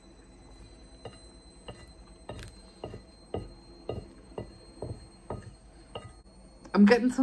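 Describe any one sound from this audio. A wooden fork scrapes and taps on a plate.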